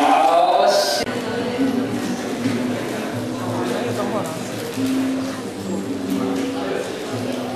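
An acoustic guitar is strummed and plucked up close.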